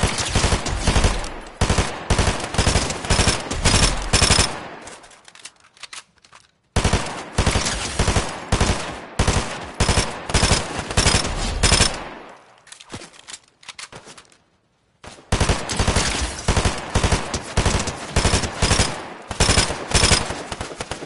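A rifle fires in rapid bursts of sharp shots.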